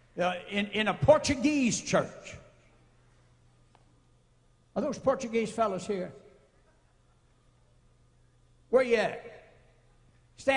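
An elderly man speaks forcefully into a microphone in bursts, with pauses between.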